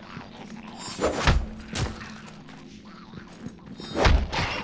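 Heavy blade blows strike with sharp thuds.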